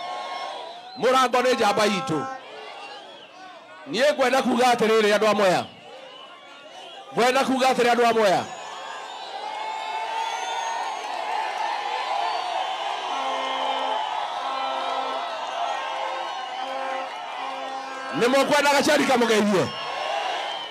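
A man shouts loudly to the crowd through a loudspeaker.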